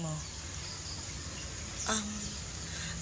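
A woman speaks calmly and warmly, close by.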